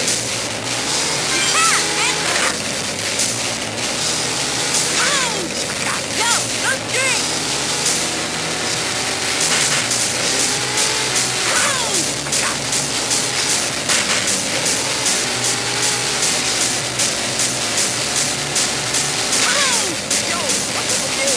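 Tyres screech in short bursts as a car drifts around corners.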